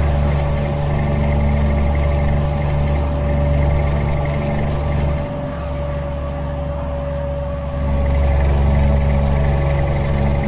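A truck's diesel engine drones steadily, rising and dipping a little in loudness.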